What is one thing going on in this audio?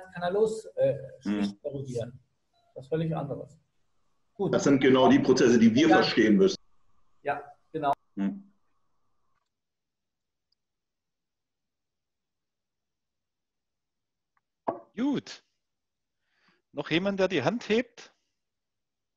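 A man speaks calmly over an online call, heard through a microphone.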